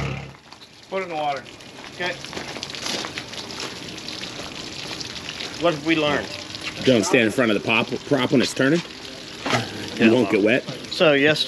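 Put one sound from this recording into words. A man talks calmly to the listener, close by, outdoors.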